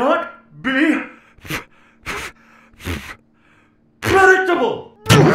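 A man speaks angrily through gritted teeth, close by.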